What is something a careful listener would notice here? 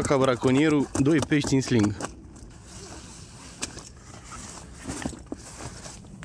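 A nylon mat rustles as hands pull it open.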